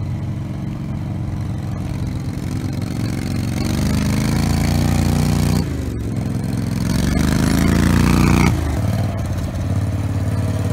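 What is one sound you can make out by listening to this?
A small off-road vehicle's engine drones and revs, rising and falling as it drives.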